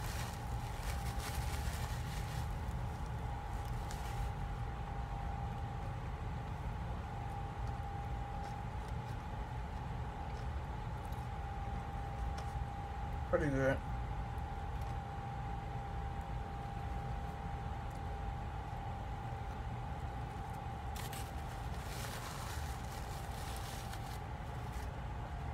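A woman chews food close by with soft, wet mouth sounds.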